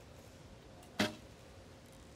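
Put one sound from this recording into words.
A bowstring snaps sharply as an arrow is released.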